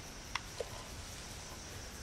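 A button clicks on an intercom panel.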